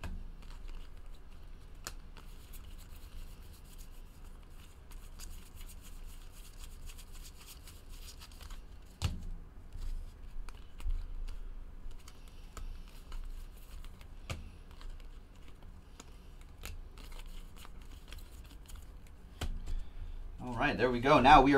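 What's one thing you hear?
Trading cards flick and rustle as they are shuffled through by hand.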